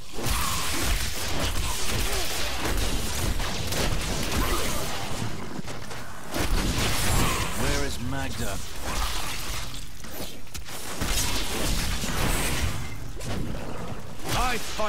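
Magic blasts crackle and boom in rapid succession.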